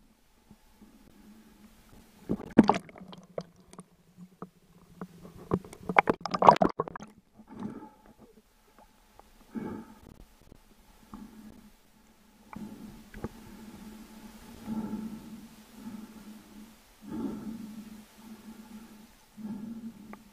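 Water splashes and sloshes close by.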